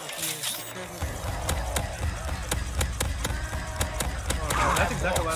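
A ray gun fires with zapping blasts.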